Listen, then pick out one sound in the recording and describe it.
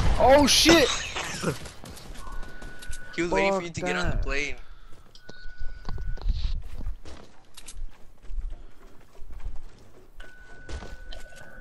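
Footsteps patter quickly on grass and hard ground.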